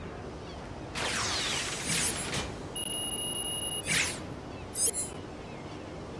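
Electronic beeps and chimes ring out as a score tallies up.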